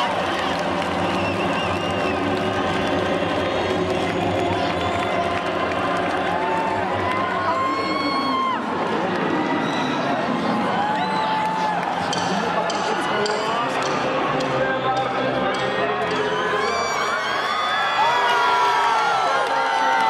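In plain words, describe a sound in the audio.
Loud live music plays through loudspeakers in a large echoing arena.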